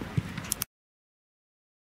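A football is kicked with a thud.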